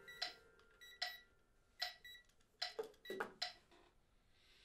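A small electronic device beeps as its buttons are pressed.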